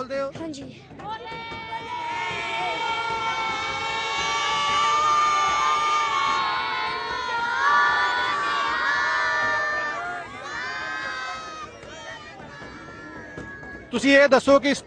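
A crowd of children sings together loudly outdoors.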